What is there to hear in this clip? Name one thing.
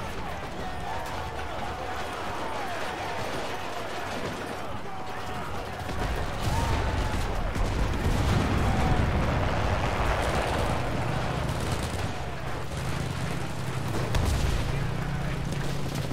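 A burning vehicle roars with flames.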